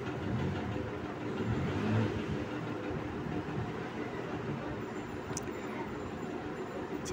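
A gas burner hisses and roars steadily.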